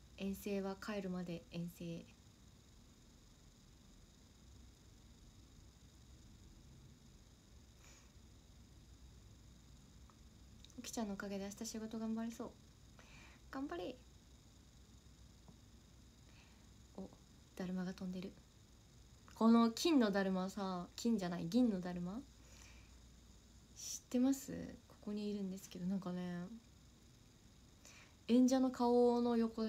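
A young woman speaks softly and casually, close to a microphone, in short bursts with pauses.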